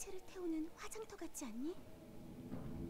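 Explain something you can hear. A young woman speaks quietly and uneasily.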